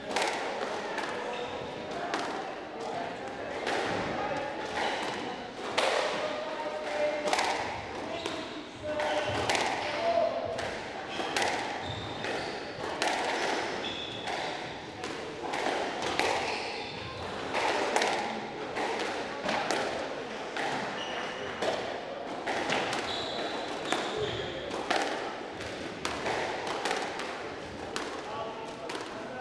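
A squash ball smacks sharply against the walls and rackets with a ringing echo.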